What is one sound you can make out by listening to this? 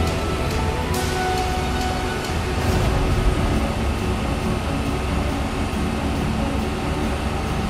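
A fire engine's motor idles with a steady low rumble.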